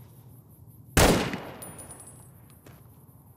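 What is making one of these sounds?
A rifle fires a single loud shot that echoes and fades.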